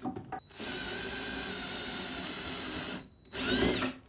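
A cordless drill whirs steadily, then stops.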